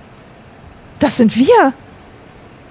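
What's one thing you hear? A young woman exclaims loudly with a rising and falling voice, close to a microphone.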